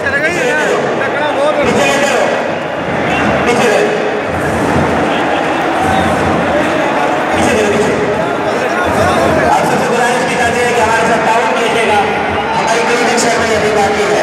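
A large stadium crowd cheers, chants and roars loudly in an open-air space.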